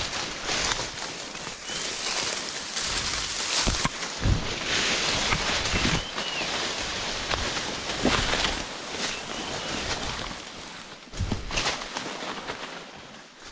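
Leaves and dry stalks rustle and brush close by.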